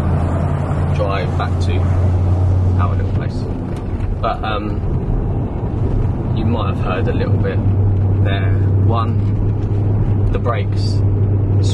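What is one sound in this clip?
A man talks calmly close by, inside a car.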